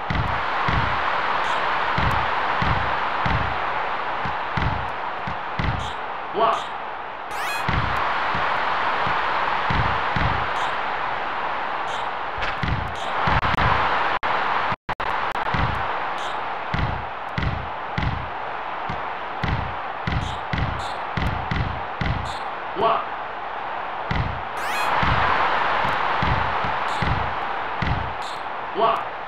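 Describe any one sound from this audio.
A basketball bounces steadily on a hard court.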